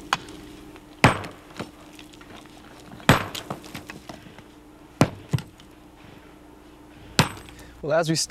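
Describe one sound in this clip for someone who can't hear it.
A hand tool strikes hard dirt and rock with sharp blows.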